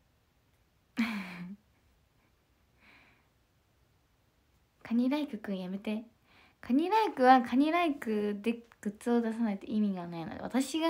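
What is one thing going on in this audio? A young woman speaks softly and close by, her voice muffled by a mask.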